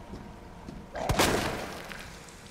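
A gun fires a few loud shots.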